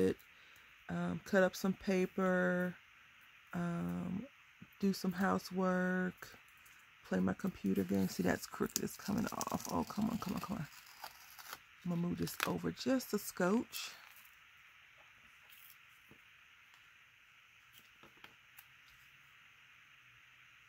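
Paper rustles softly as hands press tape onto it.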